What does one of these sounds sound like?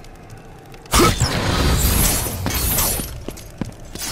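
Small glowing orbs chime and whoosh as they are gathered.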